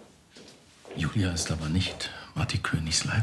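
A man speaks in a low voice nearby.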